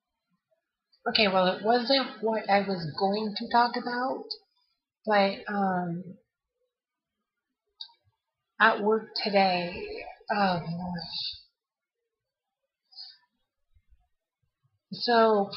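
A young woman talks casually and close up into a microphone.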